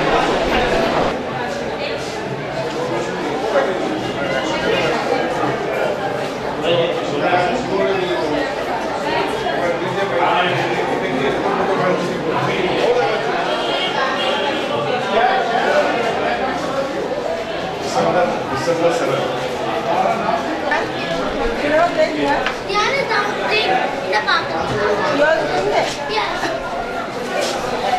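Many people chatter in a crowded room.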